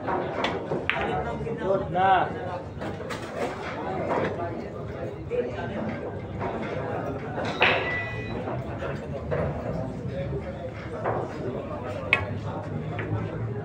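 Pool balls clack against each other.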